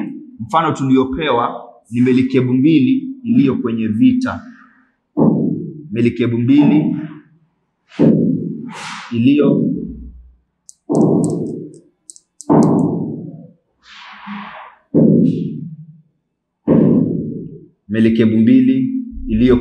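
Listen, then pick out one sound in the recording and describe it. A man speaks calmly and clearly nearby, in short phrases with pauses.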